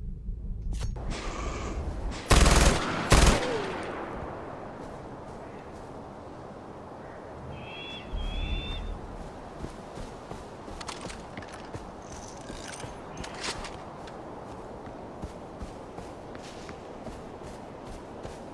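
Footsteps crunch through snow and dry grass.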